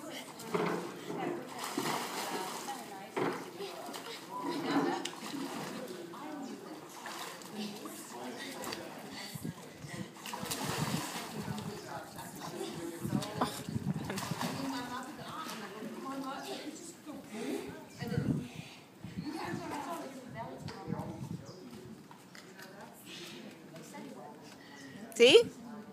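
A boy splashes and wades through water in a pool.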